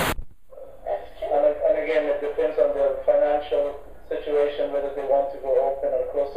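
A man speaks calmly and steadily, heard through a loudspeaker in a room.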